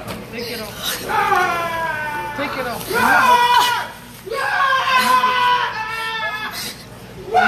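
A young woman wails and sobs loudly nearby.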